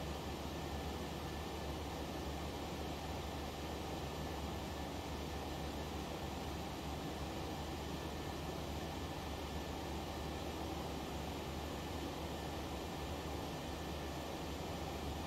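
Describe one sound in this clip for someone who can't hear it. Jet engines drone steadily.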